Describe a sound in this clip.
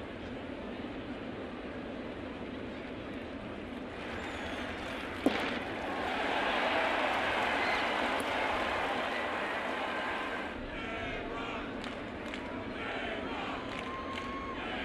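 A stadium crowd murmurs steadily, then cheers loudly.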